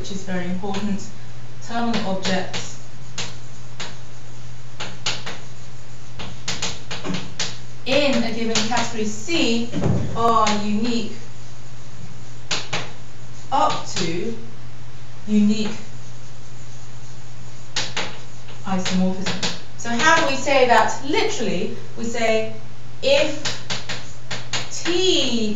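A woman speaks calmly, lecturing.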